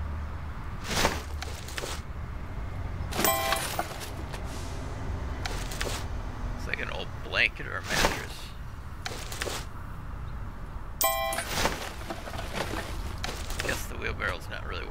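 Garbage bags thud into a metal skip.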